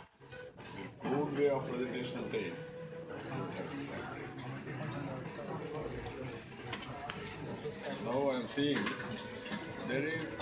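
An elderly man speaks calmly and close by.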